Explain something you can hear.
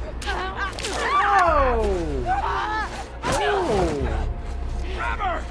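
A young woman screams in pain.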